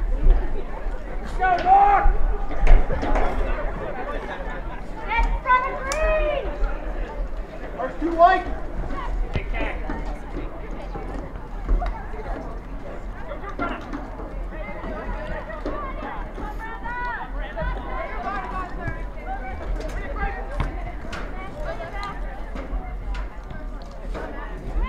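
Young women shout to each other across an open outdoor field.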